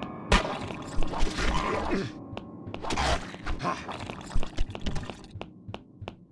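Sword blows clash and slash in a fight.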